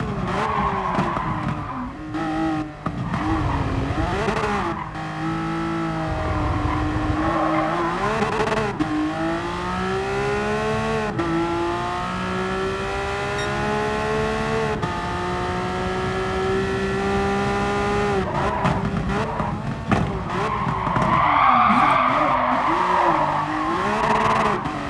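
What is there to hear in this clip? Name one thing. Tyres squeal through tight corners.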